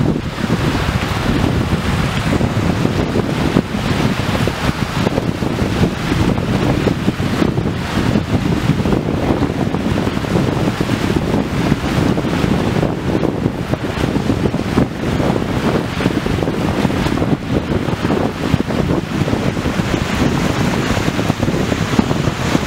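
Small waves wash onto a shore.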